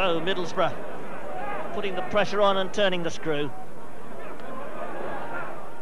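A crowd of spectators murmurs in an open stadium.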